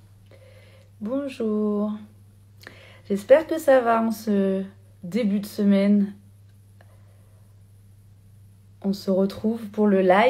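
A young woman talks calmly and close to a phone's microphone.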